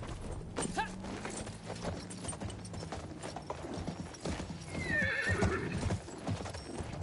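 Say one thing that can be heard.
A horse's hooves thud on dirt as it gallops.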